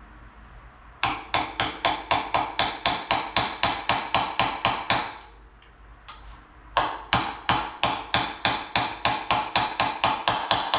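A hammer taps rapidly and steadily on a metal wheel, pausing once.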